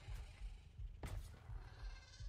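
A stone block thuds into place.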